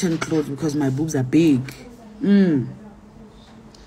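A young woman speaks close to a phone microphone, with animation.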